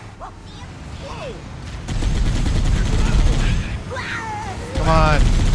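A vehicle engine rumbles low.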